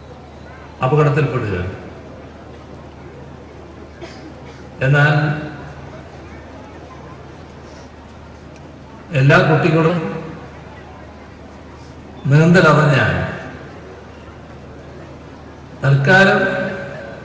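An elderly man speaks slowly and forcefully into a microphone over loudspeakers, with pauses between phrases.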